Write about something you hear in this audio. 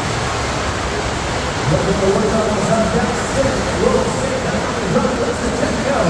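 Rushing water surges steadily over a surf slide.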